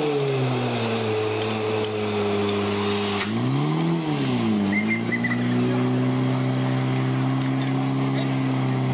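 A fire pump engine drones steadily nearby, its pitch briefly rising and falling.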